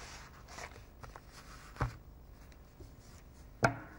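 A matchbox is set down on a board with a knock.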